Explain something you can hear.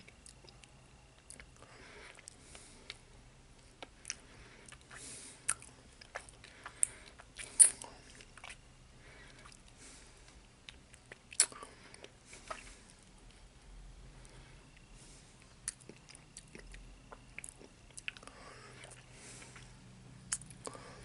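A man breathes and sniffs close by.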